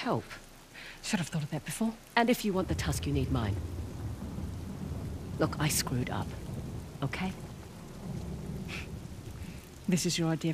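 A second young woman answers curtly, close by.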